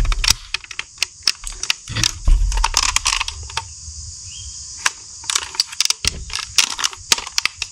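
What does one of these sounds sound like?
Plastic parts click and rattle as hands handle a toy blaster.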